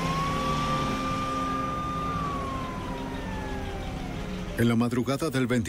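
A siren wails, rising and falling.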